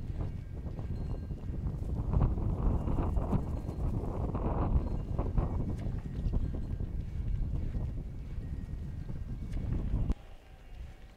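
Wind blows hard across open ground.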